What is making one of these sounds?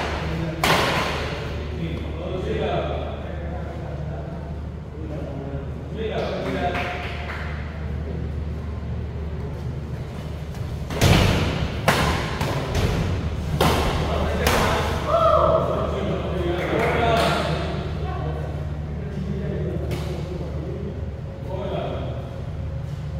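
Shoes squeak and thud on a hard court floor.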